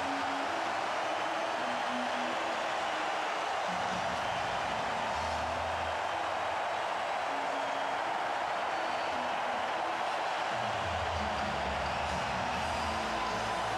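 A large crowd cheers and roars loudly in an echoing arena.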